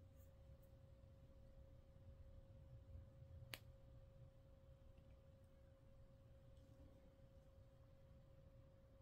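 Fingers rub and rustle against a crocheted yarn doll.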